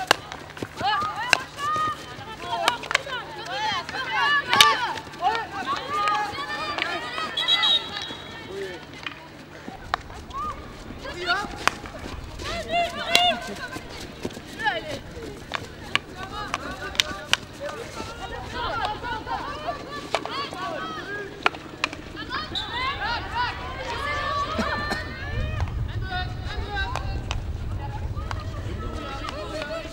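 Hockey sticks clack sharply against a ball.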